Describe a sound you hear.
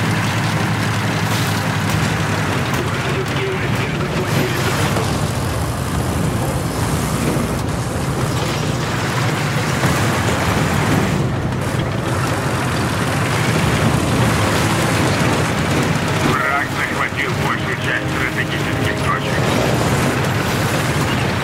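Tank tracks clatter over rough ground.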